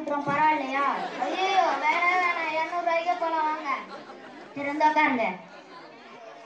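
A boy speaks loudly and with animation through a microphone.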